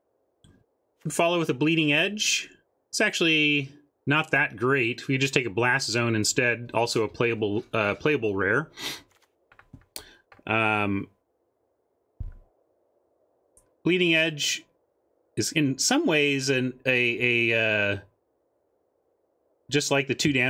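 A man talks with animation close to a microphone, in bursts with pauses.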